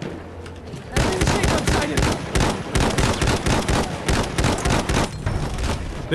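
A machine gun fires rapid bursts up close.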